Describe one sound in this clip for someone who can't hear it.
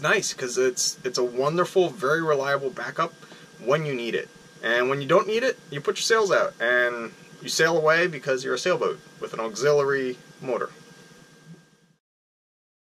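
A young man talks calmly and close to the microphone.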